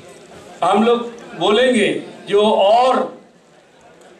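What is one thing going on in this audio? A middle-aged man speaks firmly into a microphone, with a slight echo of a hall.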